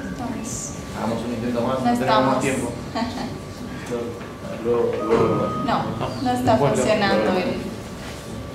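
A young man talks nearby.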